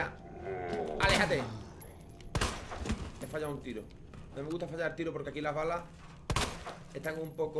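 Gunshots bang sharply.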